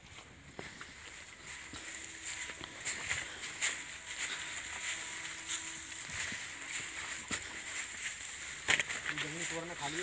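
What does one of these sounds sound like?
Feet crunch on dry straw.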